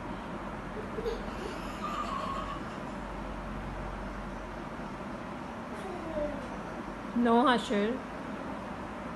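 A young child squeals and babbles close by.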